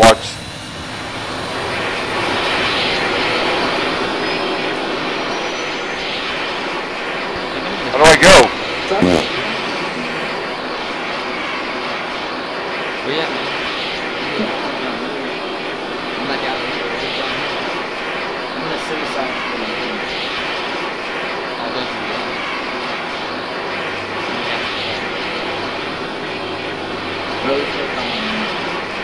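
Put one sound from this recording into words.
A jet engine idles nearby with a steady roar and whine.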